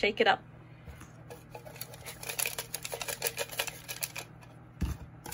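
Paper slips rustle as a hand rummages through them in a glass jar.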